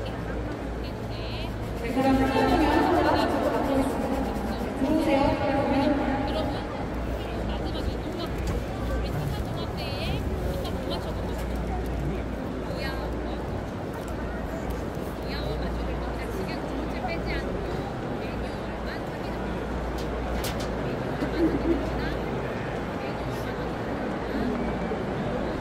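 A large crowd murmurs across an open stadium.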